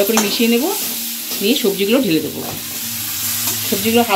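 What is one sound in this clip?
Chopped vegetables tumble into a metal pan.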